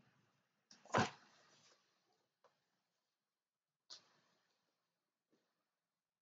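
A book's cover rustles as hands handle it.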